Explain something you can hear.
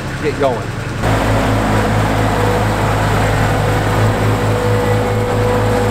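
A small tractor engine runs with a steady low rumble.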